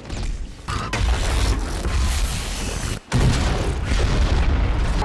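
A spaceship engine roars overhead.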